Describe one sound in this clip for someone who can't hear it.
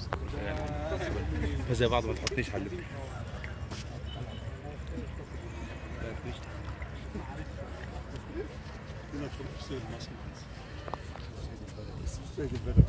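Small waves lap gently.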